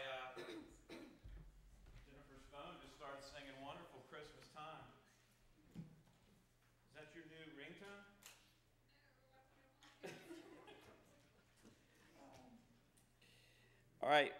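A man speaks calmly through a microphone in a large room.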